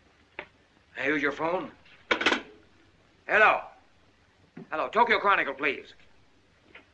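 A man speaks firmly into a telephone.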